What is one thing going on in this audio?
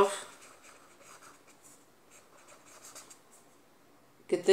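A felt-tip pen squeaks and scratches softly on paper.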